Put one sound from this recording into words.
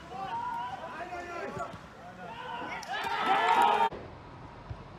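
Men shout from afar across a football pitch outdoors.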